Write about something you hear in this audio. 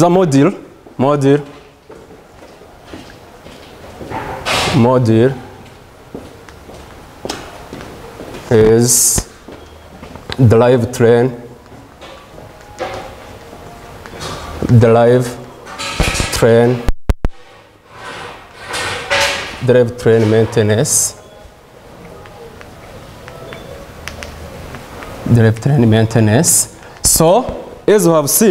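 A man speaks calmly in short phrases, in an echoing room.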